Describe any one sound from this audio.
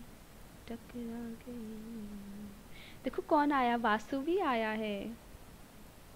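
A young woman speaks with animation into a close microphone.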